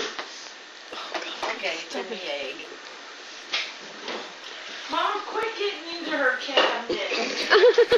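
Elderly women chat and laugh nearby.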